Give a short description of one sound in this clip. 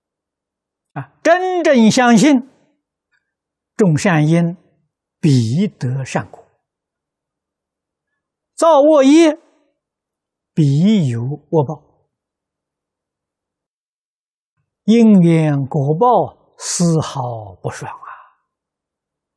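An elderly man speaks calmly and slowly into a microphone, in short phrases with long pauses.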